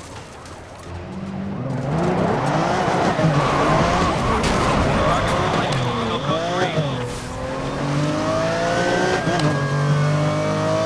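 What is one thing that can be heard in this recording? A sports car engine roars and revs up through the gears.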